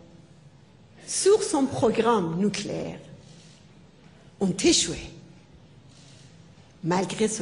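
A middle-aged woman speaks calmly into a microphone in a large hall.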